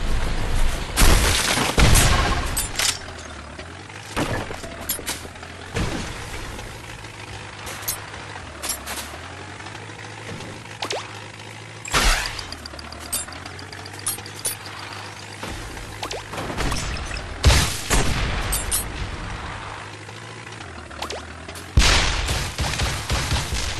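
Explosions burst with loud booms.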